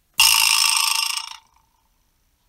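A mallet strikes a resonant object that rings briefly.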